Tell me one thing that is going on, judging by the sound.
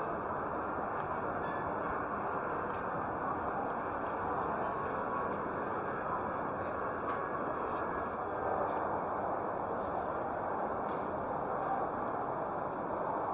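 A crowd murmurs and chatters all around in a large busy hall.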